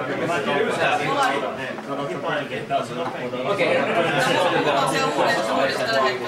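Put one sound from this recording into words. People chatter in the background of a busy room.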